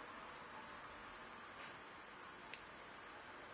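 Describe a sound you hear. A small plastic button clicks several times.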